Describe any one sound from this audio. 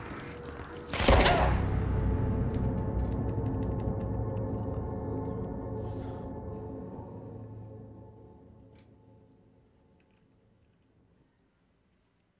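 A loud blast booms and a deep rumble slowly fades away.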